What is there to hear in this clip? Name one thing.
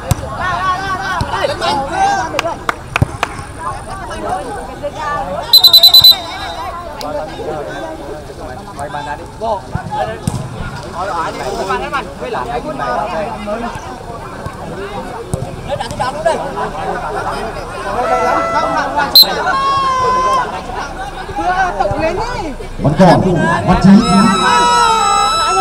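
A crowd of spectators chatters and calls out nearby.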